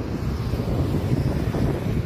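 A car drives past.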